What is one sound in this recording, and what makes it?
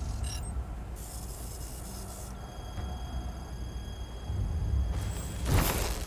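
A machine beeps while processing.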